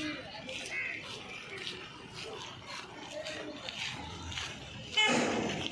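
Footsteps scuff on a gravel road.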